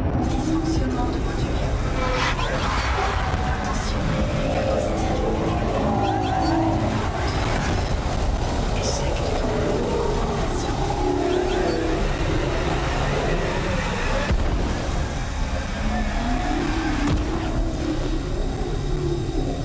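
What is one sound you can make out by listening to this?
A laser beam hums and crackles steadily as it fires.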